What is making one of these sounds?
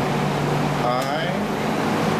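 A button on an air conditioner clicks as it is pressed.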